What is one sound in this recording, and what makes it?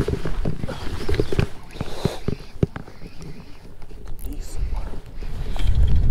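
A fishing reel clicks as its handle is cranked.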